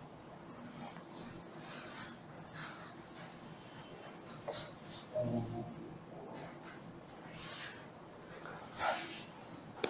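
A cloth duster rubs across a chalkboard.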